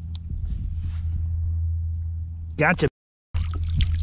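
Water splashes as a fish is netted.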